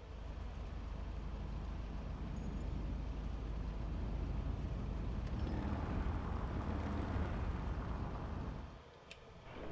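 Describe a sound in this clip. A car engine rumbles steadily, then swells a little.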